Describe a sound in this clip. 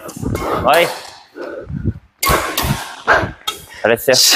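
A badminton racket strikes a shuttlecock.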